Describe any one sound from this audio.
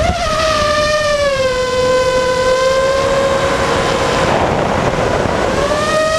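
Drone motors whine steadily, dipping in pitch and then rising again.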